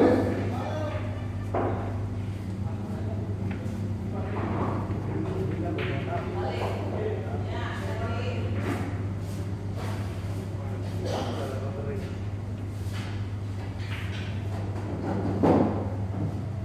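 A cue strikes a billiard ball with a sharp clack.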